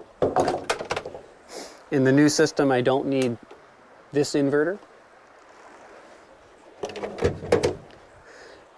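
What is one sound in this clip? Small plastic clips click and rattle as a man handles a battery connection.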